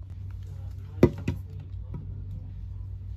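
A plastic bottle cap clicks against a hand.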